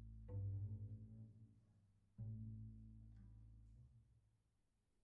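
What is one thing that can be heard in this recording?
Low string notes from a cello and double bass ring out and fade away.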